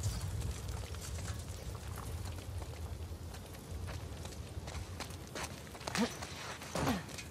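Footsteps crunch softly over rough ground.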